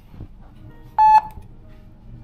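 A card payment terminal beeps once.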